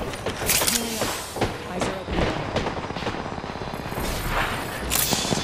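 A healing syringe whirs and clicks in a video game.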